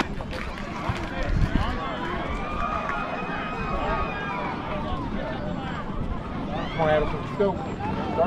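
Young girls shout and cheer excitedly outdoors.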